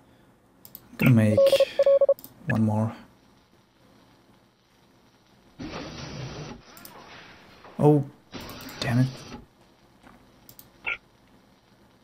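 Short game sound effects chime and blip.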